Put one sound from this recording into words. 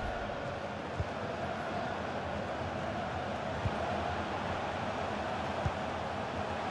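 A football thumps as it is kicked.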